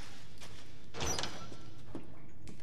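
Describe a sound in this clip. A pistol clicks sharply as it is reloaded.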